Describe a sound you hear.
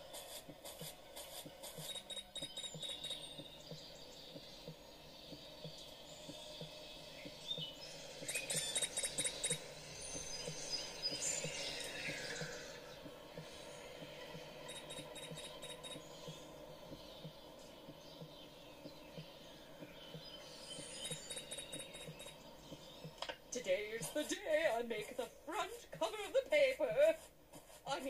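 Cheerful game music plays from a small tablet speaker.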